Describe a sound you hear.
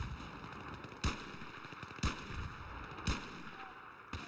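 A pistol fires single sharp shots.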